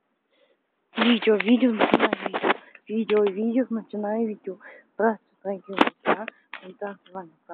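A woman speaks with animation very close to the microphone.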